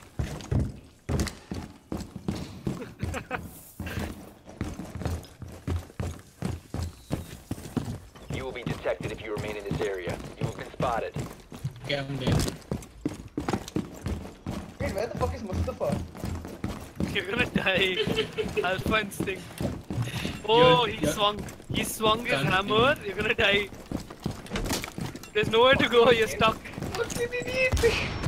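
Footsteps thud quickly across floors and stairs.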